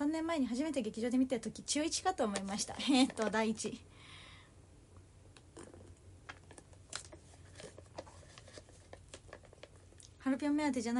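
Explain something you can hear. A young woman talks animatedly and close by.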